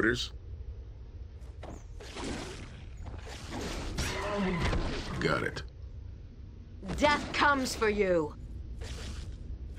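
Weapons clash in a close fight.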